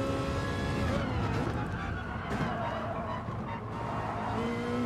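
Tyres squeal while a car brakes into a corner.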